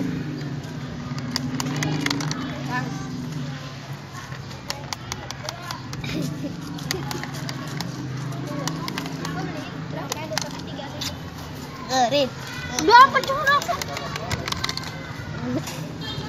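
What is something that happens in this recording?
Small plastic toy parts click and clack as they are handled.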